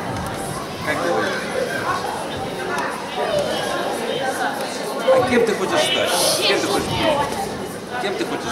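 A young girl speaks softly into a microphone, close by.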